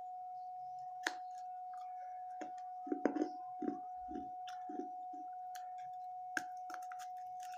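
Crunchy snacks crackle and crunch as a young woman bites and chews.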